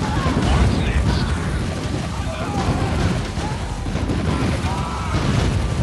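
Guns fire rapidly in a battle.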